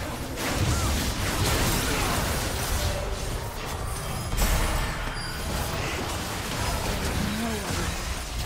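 Magic spells whoosh and crackle in a fight in a game.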